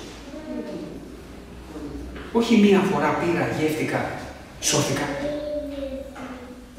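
A man speaks with animation into a microphone in an echoing room.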